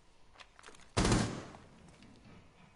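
A rifle fires a short, sharp burst of shots.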